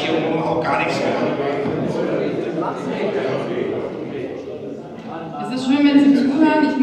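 A young woman speaks earnestly through a microphone.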